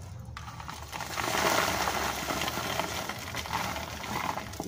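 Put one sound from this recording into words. Soil pours out of a plastic pot onto cardboard with a rustling patter.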